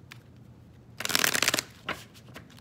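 Hands rustle and tear a paper wrapping.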